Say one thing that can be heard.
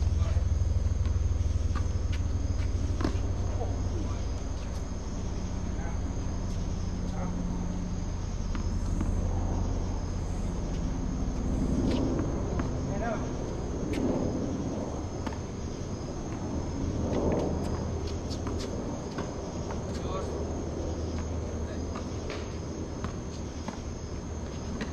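Tennis balls are struck with rackets in a steady rally.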